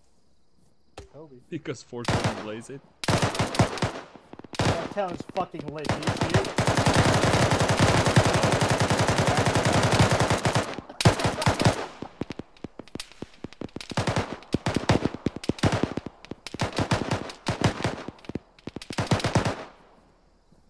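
Rifles fire in rapid bursts close by.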